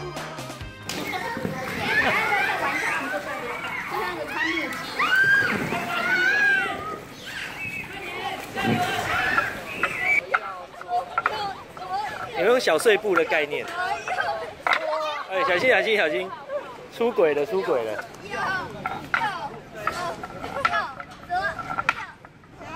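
Children shout and laugh playfully nearby.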